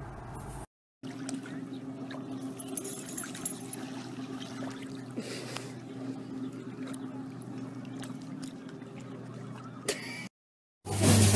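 Shallow water splashes as a dog wades through it.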